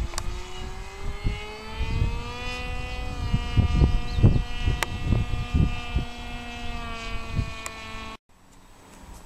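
A model plane's engine buzzes steadily overhead, rising slightly in pitch.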